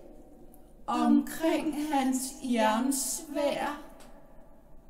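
Two young women sing together.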